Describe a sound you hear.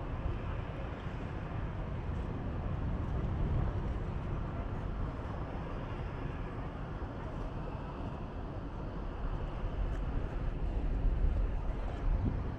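Wind blows outdoors over open water and rumbles against the microphone.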